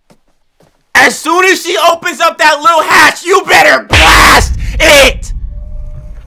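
A young man talks loudly and excitedly into a microphone.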